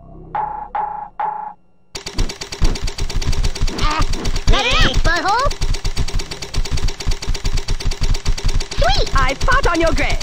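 Cartoon toy guns fire with quick popping shots.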